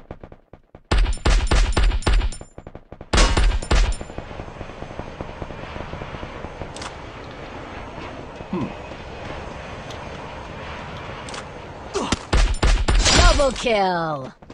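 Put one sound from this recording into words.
Rapid gunshots crack out in short, loud bursts.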